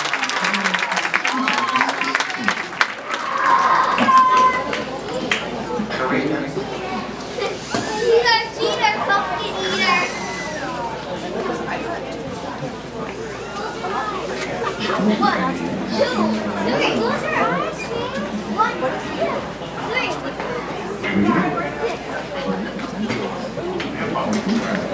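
A crowd of young people chatters nearby outdoors.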